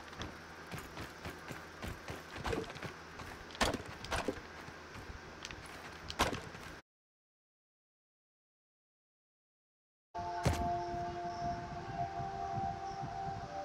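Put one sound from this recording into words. An axe chops with sharp knocks.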